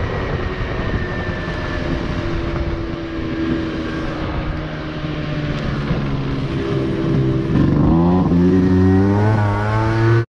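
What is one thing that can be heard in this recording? A small motorbike engine hums steadily and revs up as it rides.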